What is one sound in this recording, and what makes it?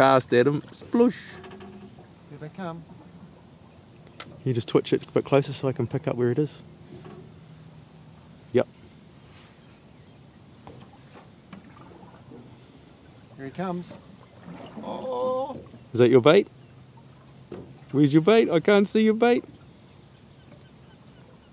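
Calm water laps gently.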